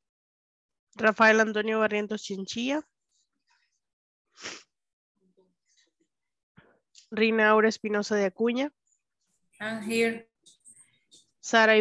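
A woman speaks clearly and slowly through an online call, with pauses between phrases.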